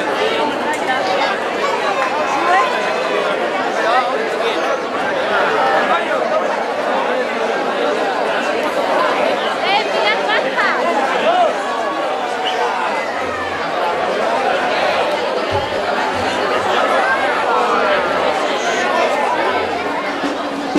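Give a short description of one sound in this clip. A large crowd of men, women and children chatters loudly all around.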